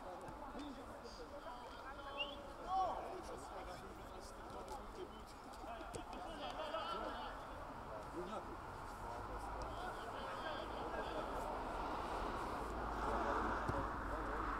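Men shout and call out across an open field at a distance.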